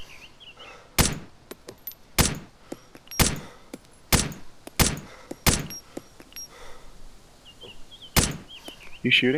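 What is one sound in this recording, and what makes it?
Sharp rifle shots crack one after another.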